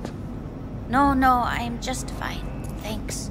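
A woman speaks briefly and calmly nearby.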